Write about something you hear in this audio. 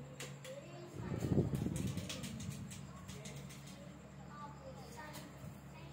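Flower stems and leaves rustle as they are handled.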